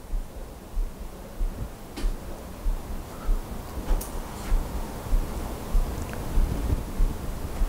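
A microphone is handled with soft bumps and rustles.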